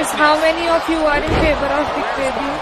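A heavy body slams onto a wrestling mat with a thud.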